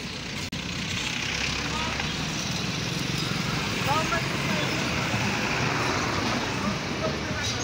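Men chatter faintly in the background of the street.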